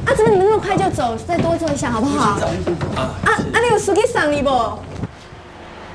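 A woman speaks pleadingly.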